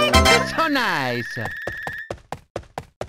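A cheerful electronic victory tune plays.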